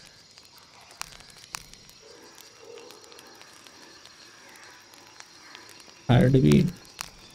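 Short soft clicks sound as a menu selection changes.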